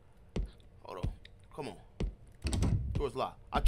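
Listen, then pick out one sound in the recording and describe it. A door handle rattles against a locked door.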